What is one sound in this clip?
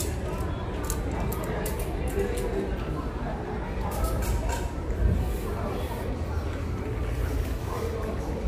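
Tent poles click and rattle as they are handled.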